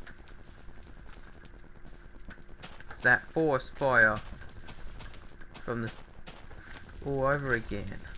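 Fire crackles and pops.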